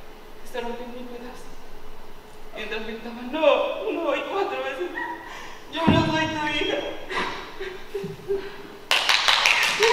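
A man declaims loudly and dramatically in a large hall.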